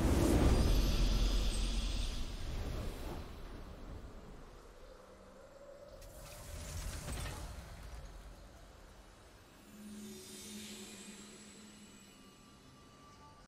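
A short victory fanfare sounds in a video game.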